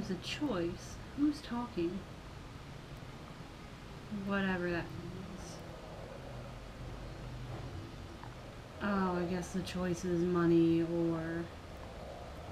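A young girl talks casually into a nearby microphone, in short bursts.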